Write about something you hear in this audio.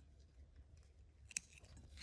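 Small scissors snip yarn.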